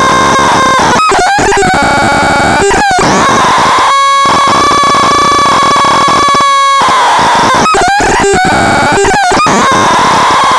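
An electronic synthesizer drones loudly with shifting, glitching tones.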